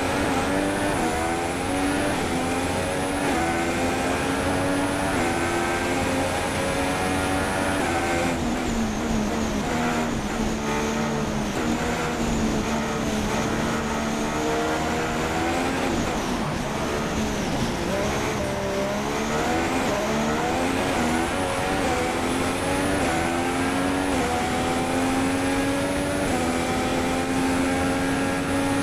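A racing car engine screams at high revs, rising through the gears.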